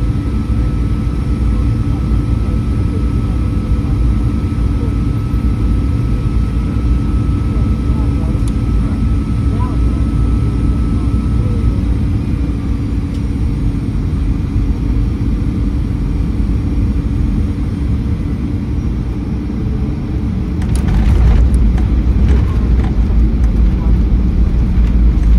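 A jet engine roars steadily, heard from inside an airliner cabin.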